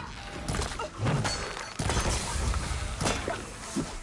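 A bowstring twangs as arrows are shot.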